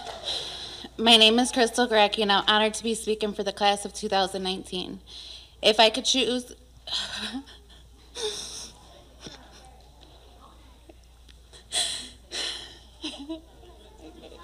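A young woman speaks into a microphone with emotion, her voice carried by a loudspeaker in a large hall.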